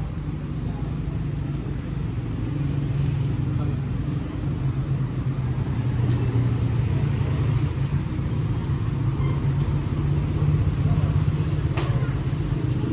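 Footsteps of passers-by tap on a pavement.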